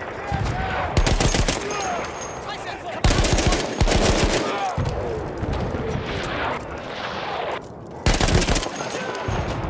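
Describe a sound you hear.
A machine gun fires loud rapid bursts.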